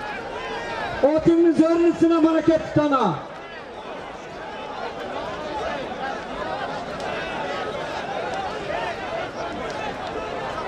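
A large crowd of men shouts and chatters outdoors.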